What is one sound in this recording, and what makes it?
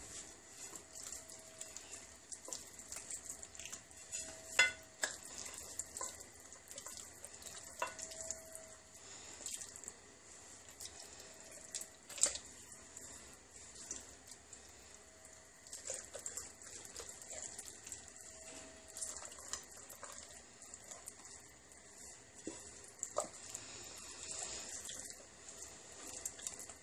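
Hands rub and squish raw chicken skin on a plate, with soft wet rustling.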